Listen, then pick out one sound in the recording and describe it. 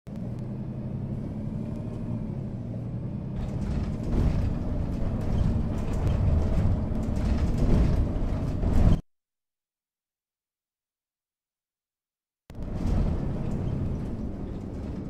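A bus engine hums and rumbles as the bus drives.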